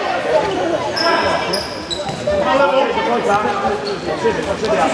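Sneakers squeak sharply on a hard indoor court.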